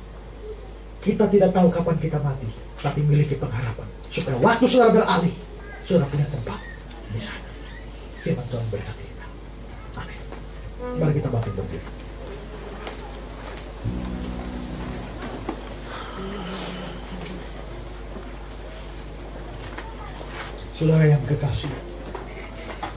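A man preaches forcefully into a microphone, heard through loudspeakers with echo.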